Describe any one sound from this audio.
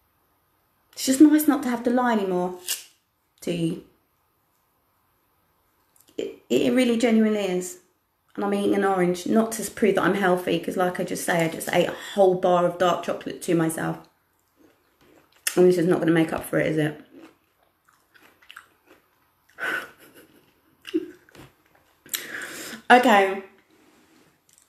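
A woman speaks calmly and close up, in short bursts with pauses.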